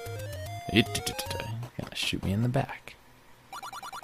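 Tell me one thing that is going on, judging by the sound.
Chiptune music plays.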